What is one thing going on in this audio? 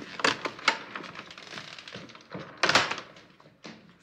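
A door latch clicks.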